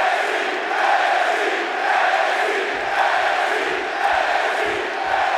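A large crowd cheers and roars steadily in a big echoing hall.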